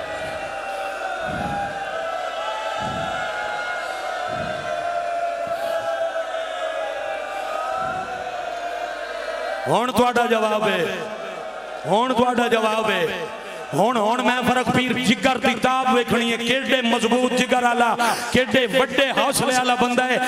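A man chants a mournful lament loudly through loudspeakers.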